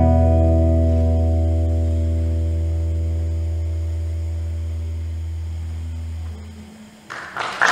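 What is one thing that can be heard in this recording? An electric guitar chord rings out and slowly fades.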